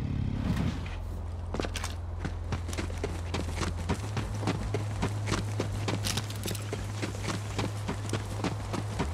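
A gun fires in quick, rapid shots.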